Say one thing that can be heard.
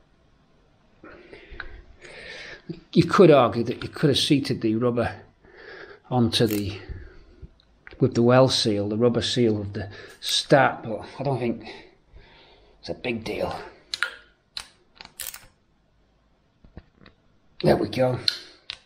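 A ratchet wrench clicks as a bolt is turned.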